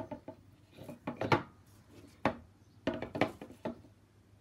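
A canvas bumps and knocks against a tabletop as it is tilted.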